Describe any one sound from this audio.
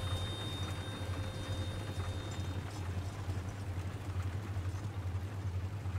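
Wooden wagon wheels rattle and creak along a dirt track, fading into the distance.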